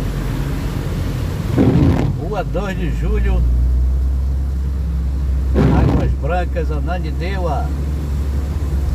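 A car's engine hums low, heard from inside the car.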